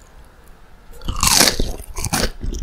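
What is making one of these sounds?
A woman bites into a crispy piece of fried food with a loud crunch close to the microphone.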